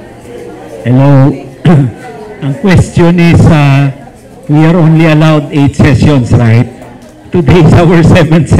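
A middle-aged woman talks with animation.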